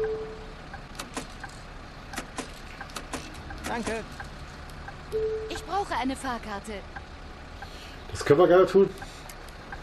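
Buttons on a ticket machine click sharply a few times.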